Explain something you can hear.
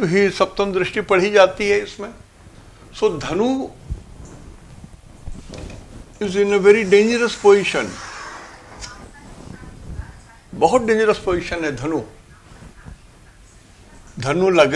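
An elderly man speaks calmly and clearly, as if teaching, in pauses.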